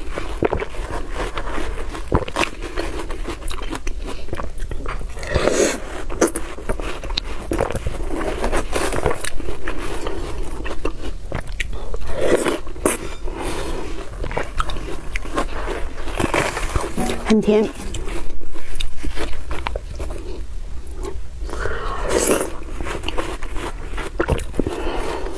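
A spoon scrapes and scoops into soft watermelon flesh.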